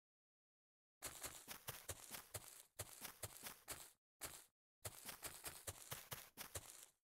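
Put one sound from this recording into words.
Game footsteps tap quickly on blocks.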